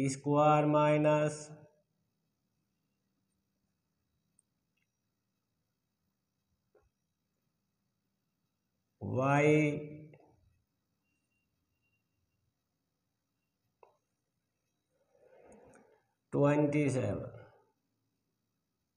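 A man speaks in short, calm phrases nearby, with long pauses.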